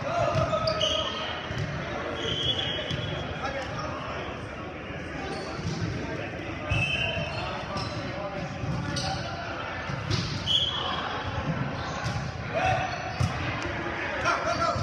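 A volleyball thumps off hands.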